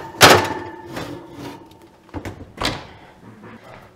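An oven door shuts with a thud.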